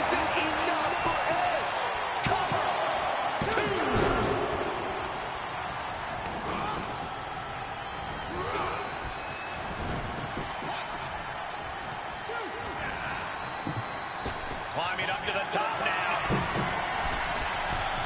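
A large crowd cheers and roars in an arena.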